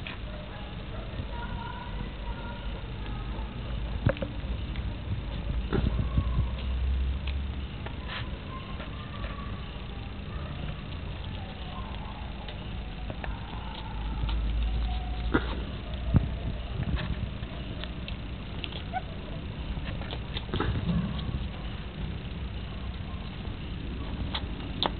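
Puppies whimper and yelp softly nearby.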